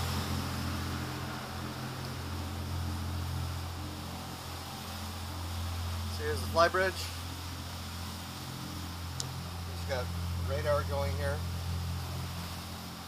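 A boat engine drones steadily at a low pitch.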